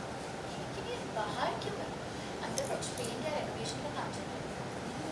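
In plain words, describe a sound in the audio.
A woman speaks tensely nearby.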